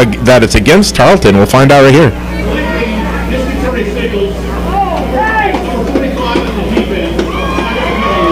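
A crowd cheers and calls out from the stands outdoors.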